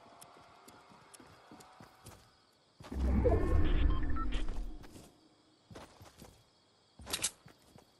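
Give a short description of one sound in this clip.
Footsteps patter quickly across soft ground.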